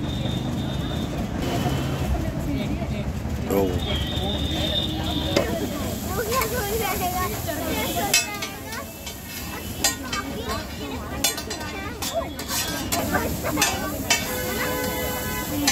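Food sizzles on a hot griddle.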